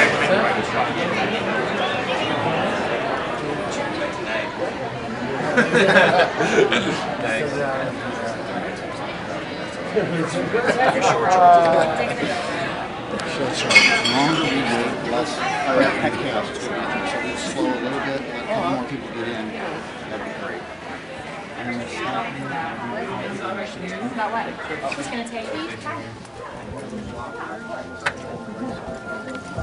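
A crowd of men chatters and laughs close by in a crowded indoor space.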